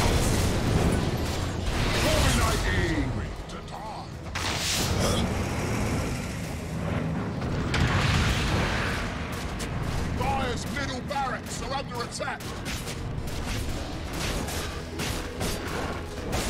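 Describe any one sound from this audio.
Magic blasts whoosh and boom.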